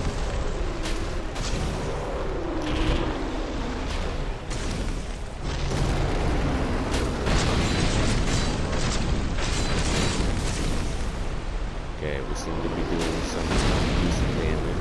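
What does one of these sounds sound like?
A huge beast roars and growls.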